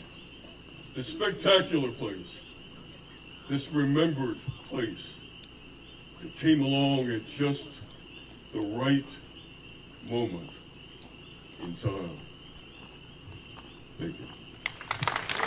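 A middle-aged man speaks through a microphone in short phrases, with pauses.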